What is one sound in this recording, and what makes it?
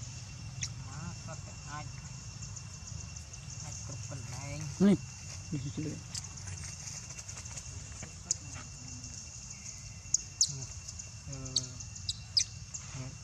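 A baby macaque squeals and whimpers close by.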